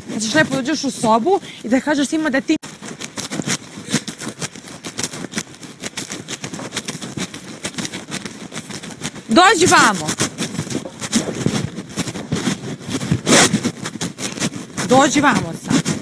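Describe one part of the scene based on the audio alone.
A young woman speaks with animation at a distance.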